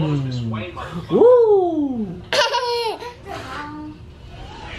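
A baby squeals and babbles.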